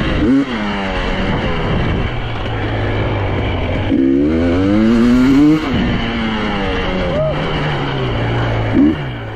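Tyres crunch over a loose dirt track.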